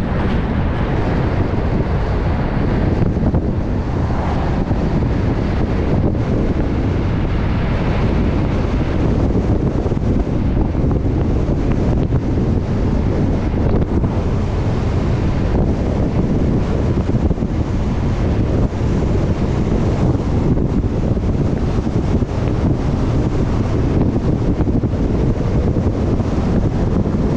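A vehicle's engine hums steadily as it drives.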